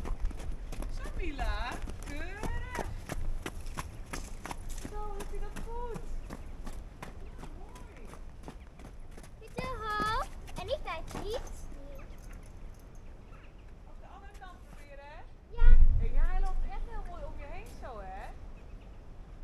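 A child talks and calls out in a high voice nearby.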